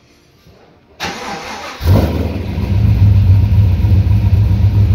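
A car engine starts and idles with a deep rumble from the exhaust.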